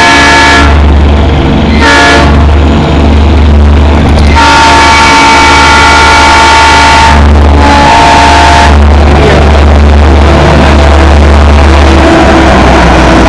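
A diesel locomotive engine rumbles deeply as it passes close by.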